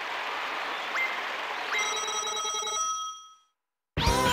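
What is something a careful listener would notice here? Bright coin chimes ring out in a quick run.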